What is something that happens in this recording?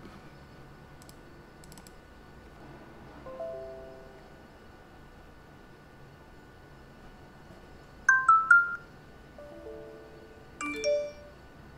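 A computer mouse clicks.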